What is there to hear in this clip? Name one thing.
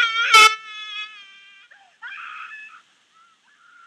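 A young woman speaks in a high, animated voice close by.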